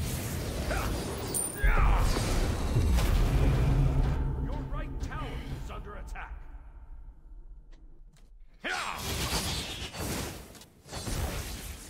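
Fantasy battle effects whoosh and clang in loud bursts.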